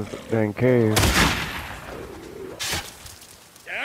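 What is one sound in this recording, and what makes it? A rifle fires sharp shots that ring out.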